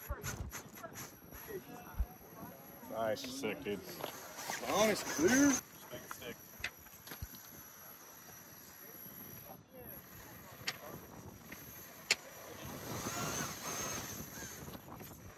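A small electric motor whines as a toy car crawls over rock.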